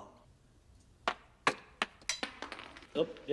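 Hard shoes step on a stone floor.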